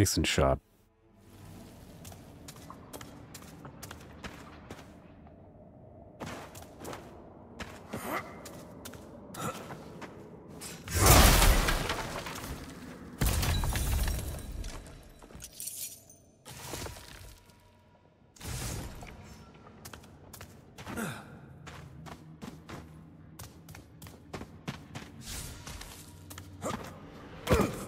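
Footsteps scuff over stone.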